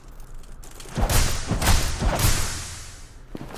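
Heavy blows land with loud thuds.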